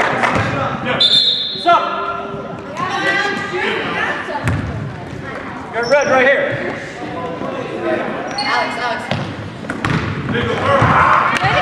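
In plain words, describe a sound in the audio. Basketball shoes squeak on a hardwood court.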